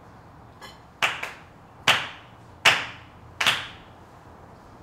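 Hands clap sharply a few times, ringing in the room.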